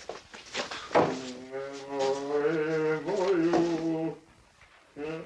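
An elderly woman talks with feeling.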